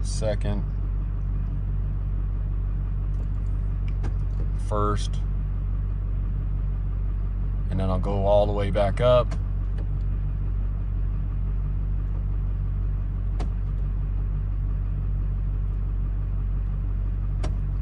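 An engine idles with a steady low hum.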